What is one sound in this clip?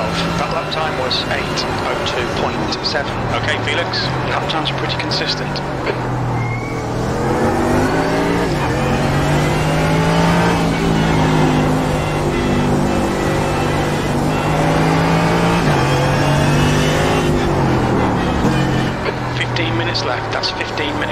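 Sharp pops and crackles come from a race car's exhaust as it slows.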